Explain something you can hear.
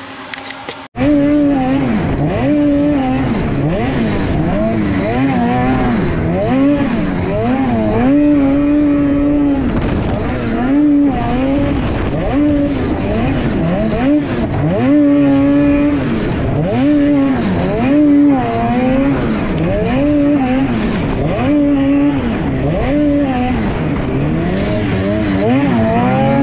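A snowmobile engine roars and revs up and down as it races over snow.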